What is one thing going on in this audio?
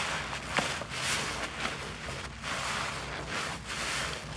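A soapy sponge is squeezed, and thick foam crackles and hisses.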